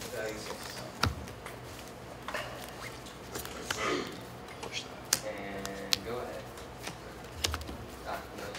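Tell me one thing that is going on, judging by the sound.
A deck of cards taps on a table.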